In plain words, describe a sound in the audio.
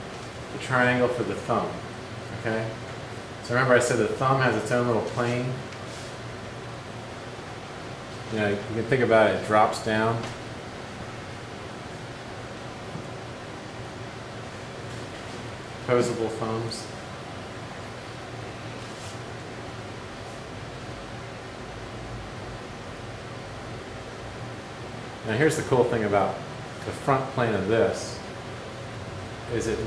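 A man speaks calmly close by, explaining in bursts with pauses.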